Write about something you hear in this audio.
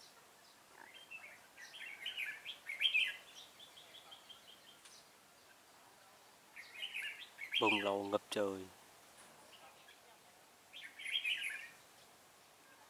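A red-whiskered bulbul sings bright, bubbling phrases.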